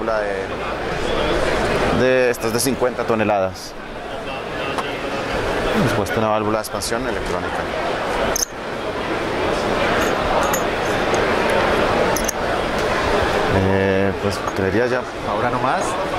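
A man speaks calmly and close into a clip-on microphone, explaining.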